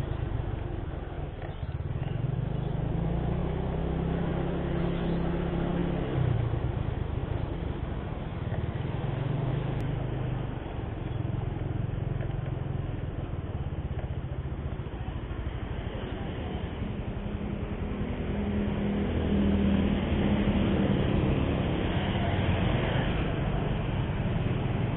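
A motorbike engine hums steadily up close, rising and falling in pitch.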